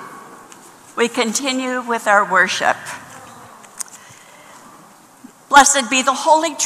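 A woman speaks loudly into a microphone, heard through loudspeakers.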